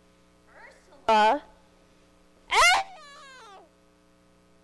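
A young performer cries out loudly twice in a large echoing hall.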